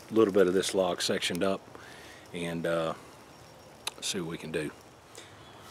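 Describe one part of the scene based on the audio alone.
An older man speaks calmly nearby.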